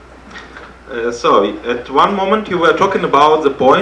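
A man speaks calmly into a microphone over loudspeakers.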